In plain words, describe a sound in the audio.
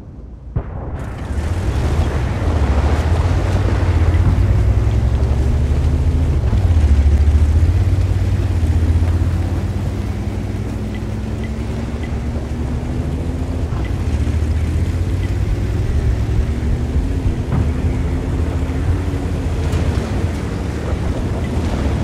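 A tank engine rumbles and roars.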